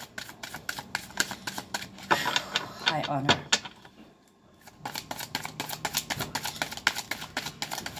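Cards are shuffled quickly with a soft, rapid flutter of clicks.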